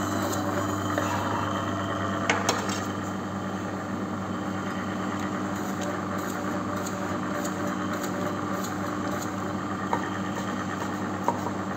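A meat slicer's motor hums steadily.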